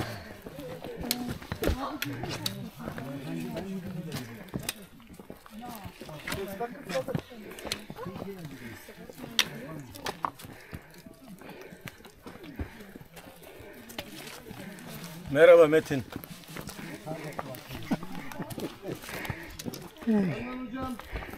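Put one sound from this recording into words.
Footsteps crunch and scrape on loose rocks.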